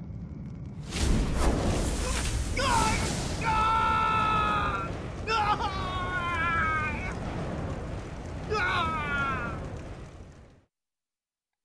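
Magic flames roar and crackle.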